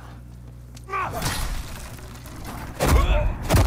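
Heavy blows and crashes ring out in a fight.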